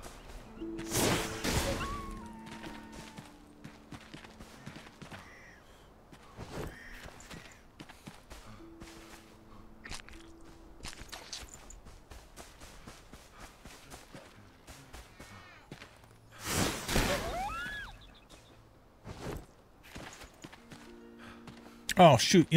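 Footsteps patter quickly on dirt and grass.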